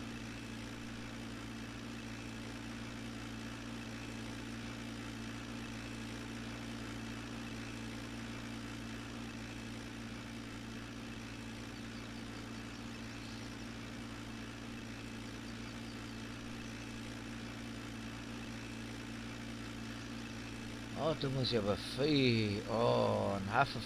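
A tractor engine hums steadily as it drives along a road.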